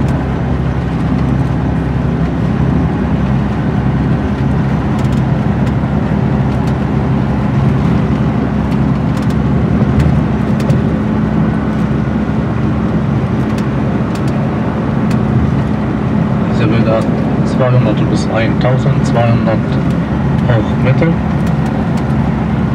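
A vehicle's engine hums steadily from inside as it drives along a road.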